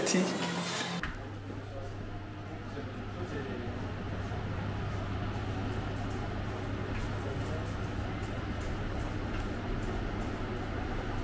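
An extractor fan hums steadily.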